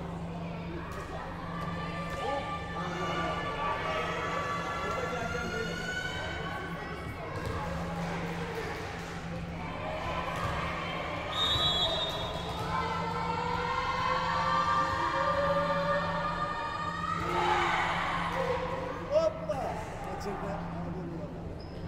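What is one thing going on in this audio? A volleyball is struck and bounces in a large echoing hall.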